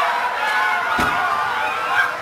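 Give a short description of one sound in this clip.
A metal folding chair bangs against the ring.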